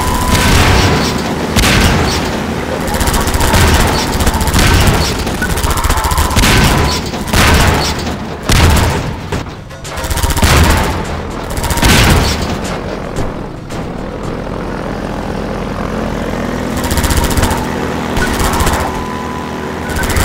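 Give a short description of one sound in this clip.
Gunfire bursts out in loud blasts.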